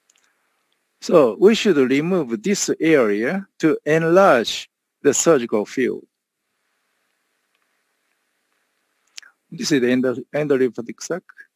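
A man speaks calmly through an online call microphone, presenting.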